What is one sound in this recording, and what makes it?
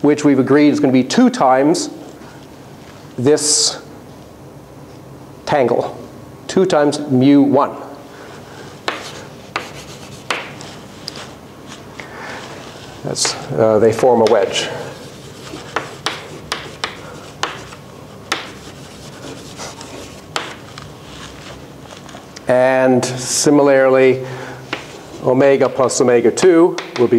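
A middle-aged man lectures calmly through a clip-on microphone.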